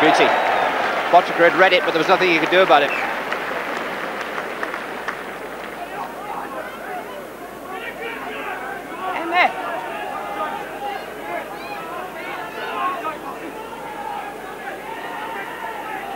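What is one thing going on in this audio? A large crowd cheers and roars loudly in a stadium, then quietens to a murmur.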